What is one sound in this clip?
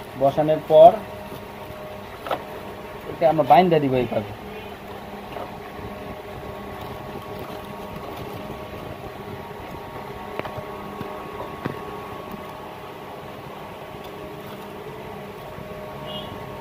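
Wires rustle and tap as hands handle them.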